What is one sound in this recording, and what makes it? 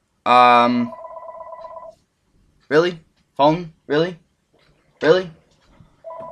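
A young man close to a microphone lets out short, loud vocal bursts.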